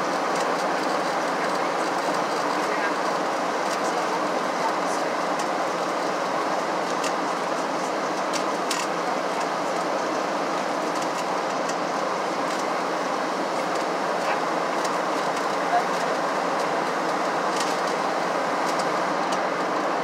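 Jet engines roar steadily inside an airplane cabin in flight.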